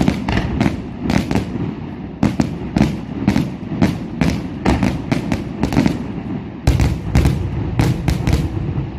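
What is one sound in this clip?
Fireworks burst with sharp bangs and crackles outdoors, echoing over the distance.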